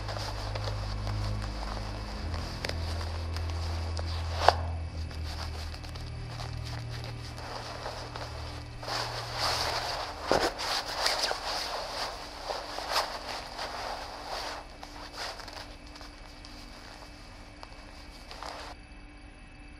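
Clothing rustles and rubs, heard through a television speaker.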